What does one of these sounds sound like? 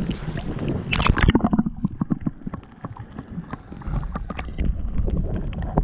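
Muffled bubbling and gurgling sounds underwater.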